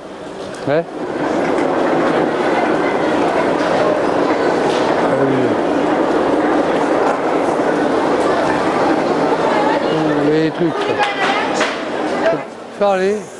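A crowd murmurs and bustles in a large echoing hall.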